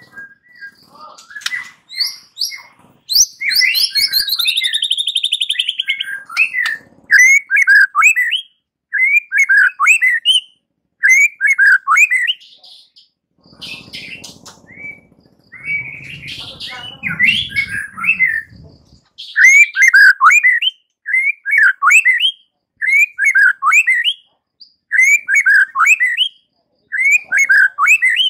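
A songbird sings loud, varied whistling phrases close by.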